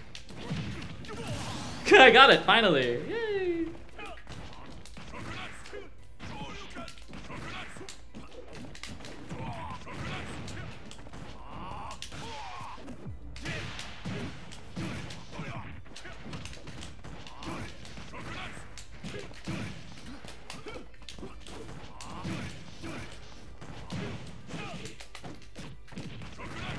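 Fighting game sound effects of hits and blasts play.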